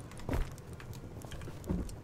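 A fire crackles in a furnace.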